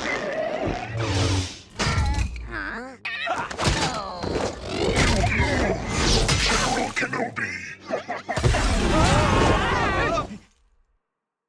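Lightsabers hum and clash with sharp electric crackles.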